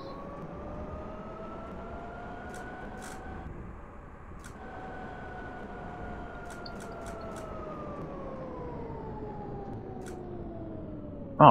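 Tram wheels rumble along the rails.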